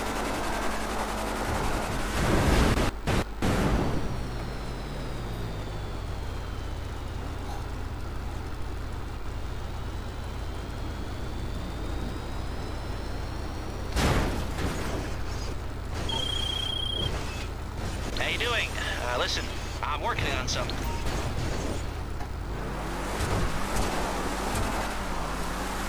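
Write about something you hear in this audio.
A car engine hums steadily as a vehicle drives over rough ground.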